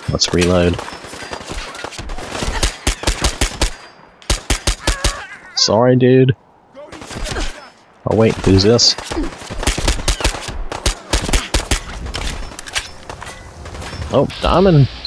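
Rapid gunshots fire in quick bursts.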